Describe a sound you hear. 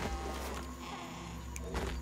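Hands grip and scrape against rock.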